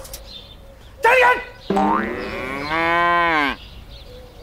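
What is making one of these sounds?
An elderly man shouts loudly and drawn out, close by.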